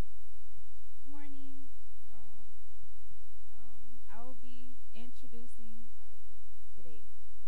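A young woman speaks into a microphone, heard through a loudspeaker in an echoing room.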